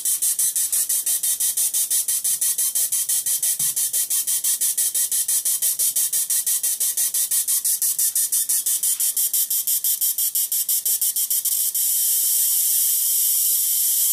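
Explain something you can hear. A plasma globe buzzes with a fast, high, pulsing hiss.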